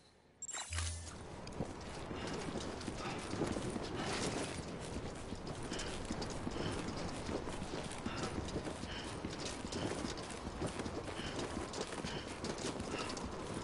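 Footsteps tread steadily on pavement.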